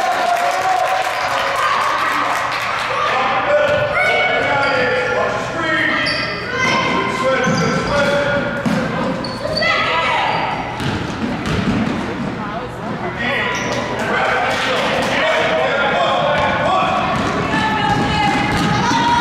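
Sneakers squeak sharply on a floor in a large echoing hall.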